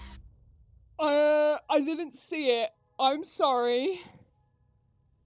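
A young woman cries out loudly in surprise with a rising and falling pitch.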